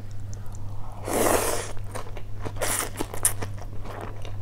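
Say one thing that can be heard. A woman slurps noodles loudly up close.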